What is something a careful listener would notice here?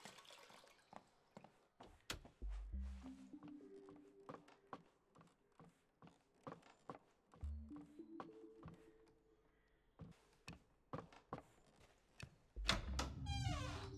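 Light footsteps tap on a wooden floor.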